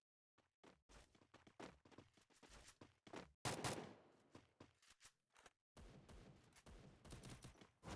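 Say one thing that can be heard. Footsteps patter quickly on hard ground.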